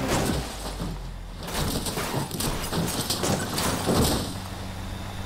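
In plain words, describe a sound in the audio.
A car crashes and tumbles, metal crunching on dirt.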